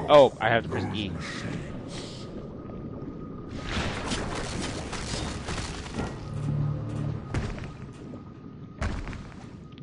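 Water rumbles and churns underwater.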